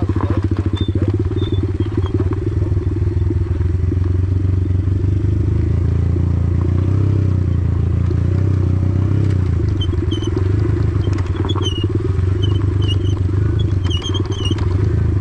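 A dirt bike engine drones steadily up close.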